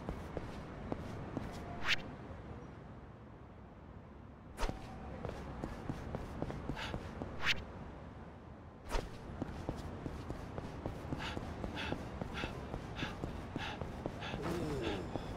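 Footsteps slap quickly on a paved path.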